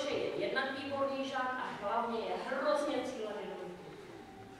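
A woman speaks clearly into a microphone in a large hall.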